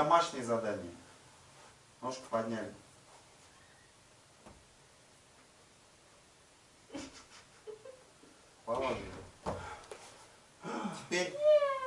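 A man speaks calmly to a small group in short phrases.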